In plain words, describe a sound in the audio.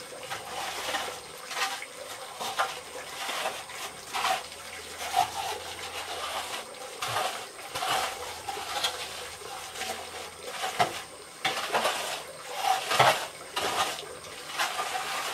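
A trowel scrapes and smooths wet cement in short strokes.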